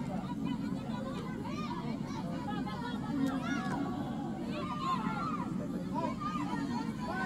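Young women shout to each other across an outdoor field.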